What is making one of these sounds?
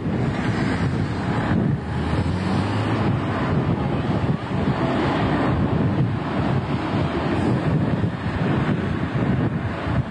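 A bus engine rumbles nearby.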